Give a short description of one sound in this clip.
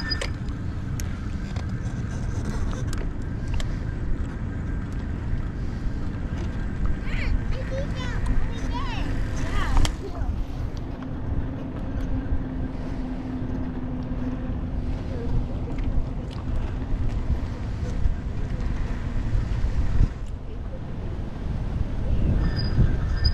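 A bicycle rolls along a paved path.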